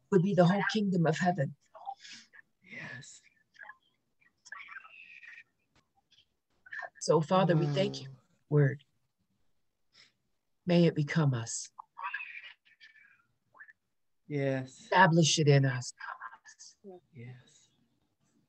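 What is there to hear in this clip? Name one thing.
A woman talks calmly over an online call.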